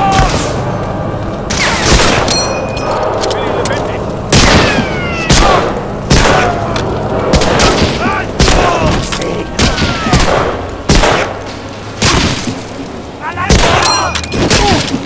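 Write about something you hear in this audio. Gunshots crack loudly, one at a time, with echoes after each.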